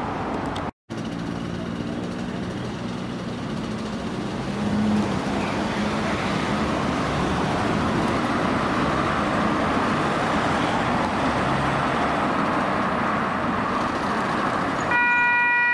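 A van approaches through traffic.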